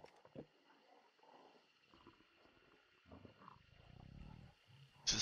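Water laps and splashes softly.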